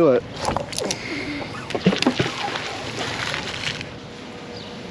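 A magnet splashes into water.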